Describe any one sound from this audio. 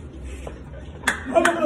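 Young men laugh briefly.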